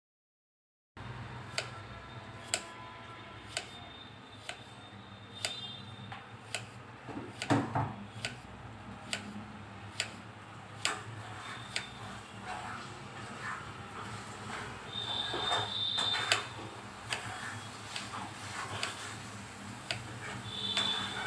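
A knife chops through a cucumber onto a wooden board in sharp, regular knocks.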